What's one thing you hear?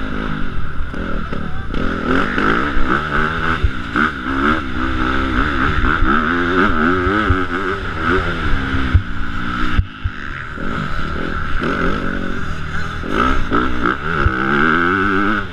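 A dirt bike engine revs hard and close, rising and falling in pitch.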